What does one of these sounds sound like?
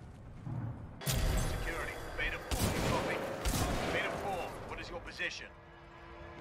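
Gunfire bursts loudly in rapid shots.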